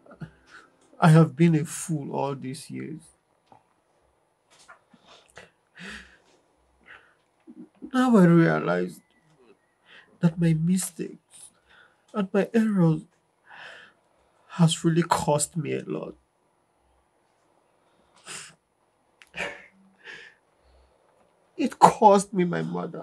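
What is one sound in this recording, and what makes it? A man speaks close by in a pleading, tearful voice.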